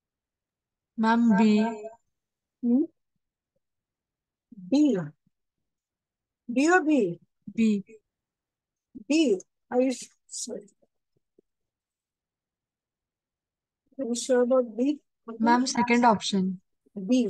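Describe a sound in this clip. A woman speaks calmly and clearly through a microphone, in short phrases with pauses.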